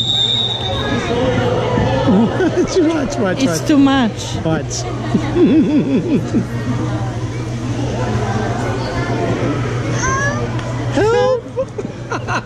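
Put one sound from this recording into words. A baby babbles and whines through a small phone speaker.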